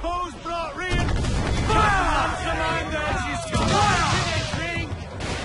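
Cannons boom in heavy blasts.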